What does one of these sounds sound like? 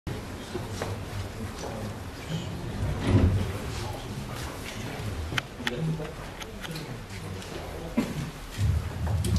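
A young woman speaks into a microphone over loudspeakers.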